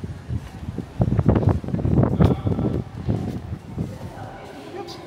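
Wind gusts loudly against the microphone.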